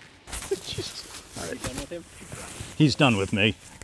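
A middle-aged man talks warmly up close.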